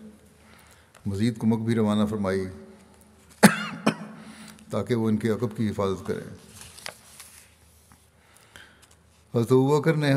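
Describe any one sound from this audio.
An elderly man speaks slowly and calmly into a microphone, with pauses.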